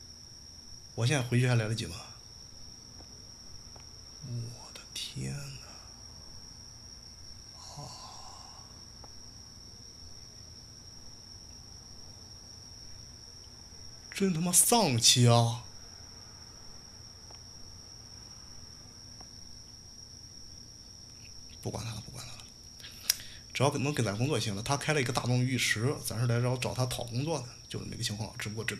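A young man talks close to a microphone, in short animated bursts.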